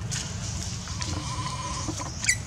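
A baby monkey squeals thinly.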